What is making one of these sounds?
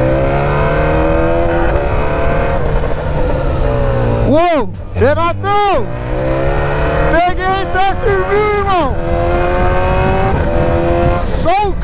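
A motorcycle engine drones loudly at speed.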